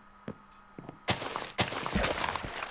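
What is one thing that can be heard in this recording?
Crops are broken with soft, crackling pops.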